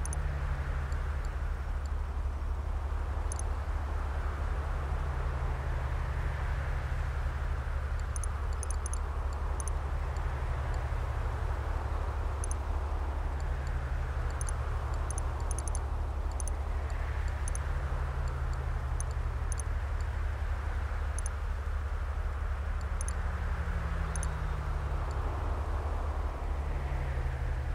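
Short, soft electronic clicks sound now and then.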